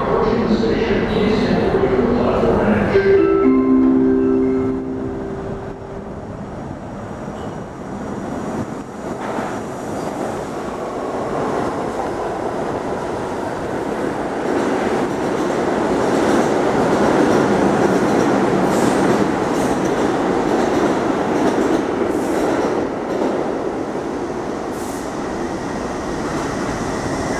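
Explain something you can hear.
A subway train rumbles and clatters loudly past on the tracks in an echoing tunnel station.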